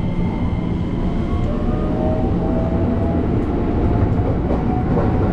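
An electric train motor whines, rising in pitch as the train pulls away.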